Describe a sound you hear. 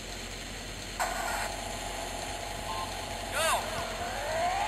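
Electronic start beeps sound from a handheld game.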